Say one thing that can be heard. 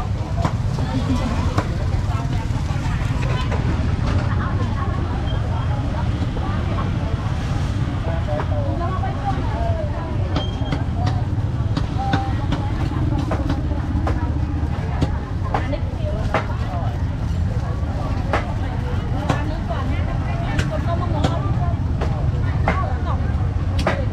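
A crowd of men and women chatter all around, close and far.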